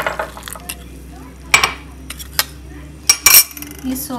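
A wire whisk clinks against a metal bowl.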